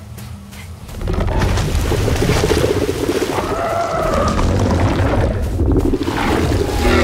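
A large creature growls loudly nearby.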